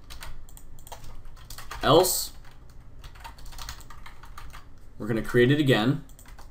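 Keys click steadily on a computer keyboard.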